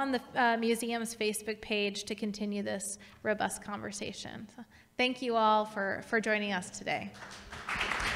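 A woman speaks through a microphone in a large room.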